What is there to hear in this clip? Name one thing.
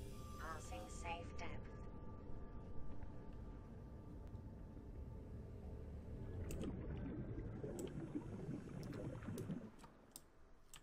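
A submarine engine hums low and steady.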